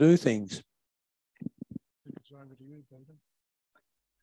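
An elderly man speaks briefly through a microphone.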